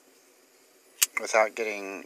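A folding knife blade clicks open.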